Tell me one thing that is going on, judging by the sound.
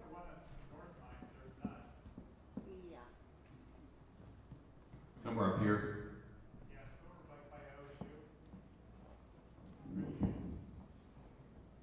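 A young woman speaks through a microphone.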